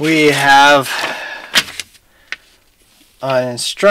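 Paper pages rustle as hands unfold them.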